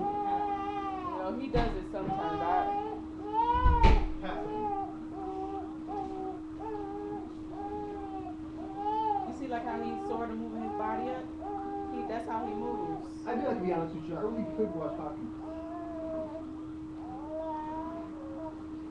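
A baby cries in short, repeated wails close by.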